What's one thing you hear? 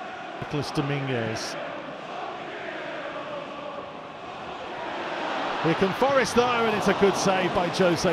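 A large stadium crowd roars, swelling louder as play nears the goal.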